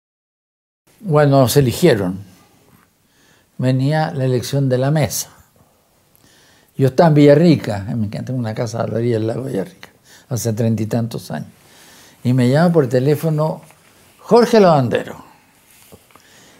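An elderly man speaks calmly and thoughtfully, close to a microphone, with pauses between phrases.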